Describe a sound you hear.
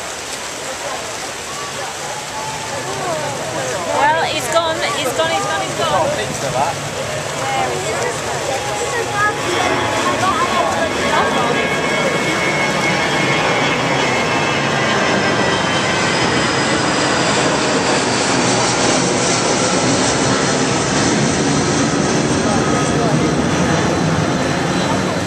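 Many swimmers splash and churn through open water.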